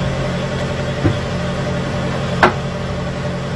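Metal cans clink as they are handled.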